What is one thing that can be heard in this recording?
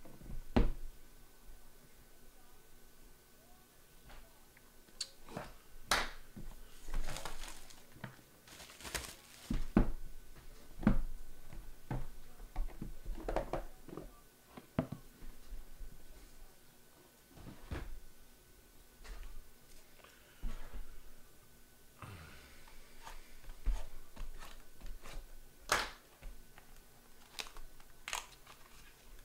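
Hands tap and slide cardboard and plastic packaging with soft knocks and rustles.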